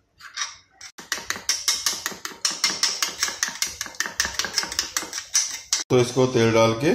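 A fork beats eggs quickly against a metal bowl.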